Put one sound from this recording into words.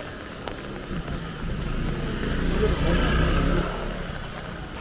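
Tyres hiss on a wet street.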